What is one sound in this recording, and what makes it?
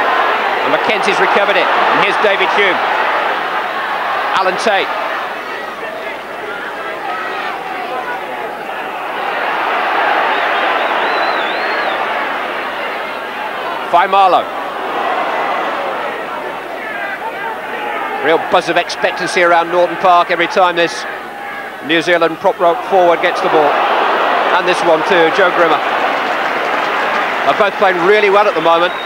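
A large crowd roars and cheers outdoors, swelling and fading.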